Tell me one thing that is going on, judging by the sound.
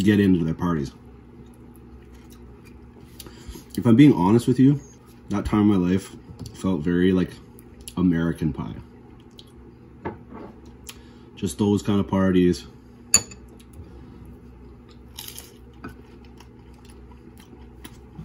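A man chews food.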